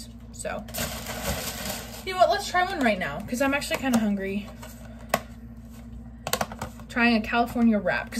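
A plastic container crinkles and rustles.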